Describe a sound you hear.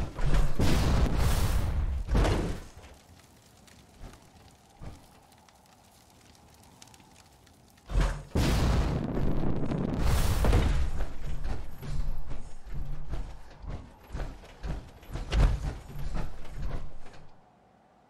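Heavy metal footsteps stomp on hard ground.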